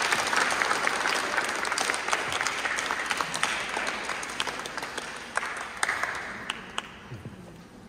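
An audience applauds in a large echoing hall, the clapping slowly fading.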